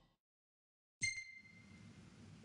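A soft electronic chime rings once.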